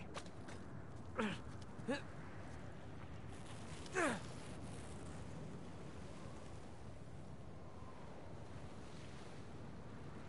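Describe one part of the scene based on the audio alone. Wind blows steadily through a rocky gorge.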